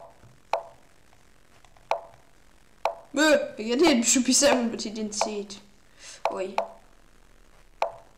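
Short sharp clicks sound as chess moves are played.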